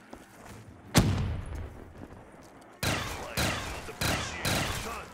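A gun fires several loud shots, each one booming and echoing.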